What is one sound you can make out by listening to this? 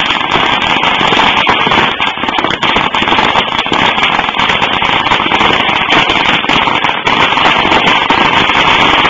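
A brush pile burns and crackles.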